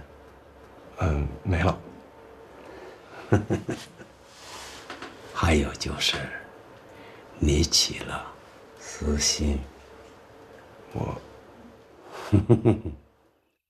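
A younger man speaks quietly, close by.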